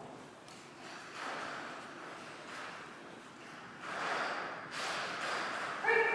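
A woman calls to a dog with animation in a large echoing hall.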